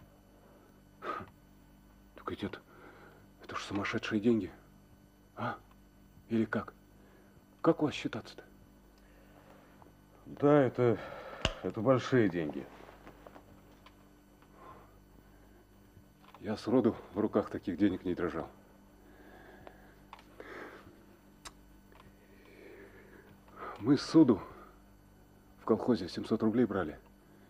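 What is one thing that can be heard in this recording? A man speaks quietly and thoughtfully, close by.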